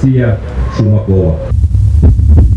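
A man reads out solemnly through a microphone and loudspeakers, outdoors.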